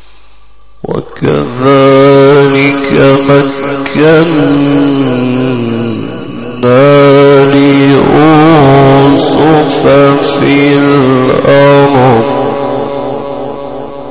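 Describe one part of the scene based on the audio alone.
A man chants loudly and melodiously into a microphone, in long drawn-out phrases.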